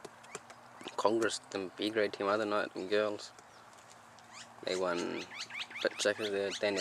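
Birds call with loud warbling notes nearby.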